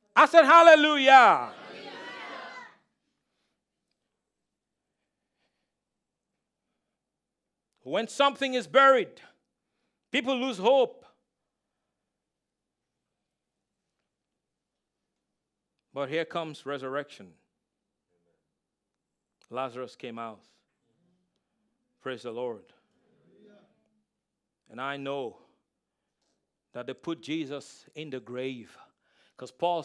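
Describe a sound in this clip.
A man speaks through a microphone, pausing often between phrases.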